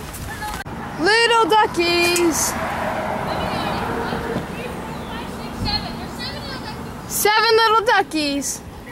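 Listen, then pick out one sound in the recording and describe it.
Ducks quack nearby.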